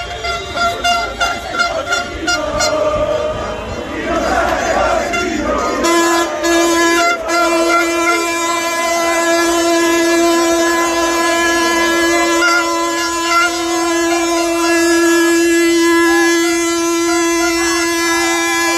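A large crowd of young men chants and cheers loudly outdoors.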